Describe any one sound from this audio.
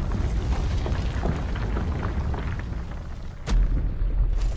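A fire crackles and hisses nearby.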